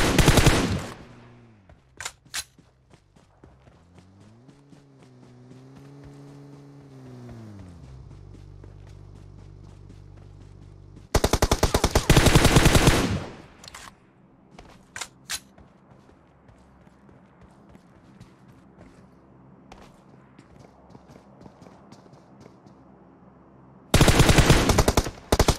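A rifle fires rapid, loud bursts of shots.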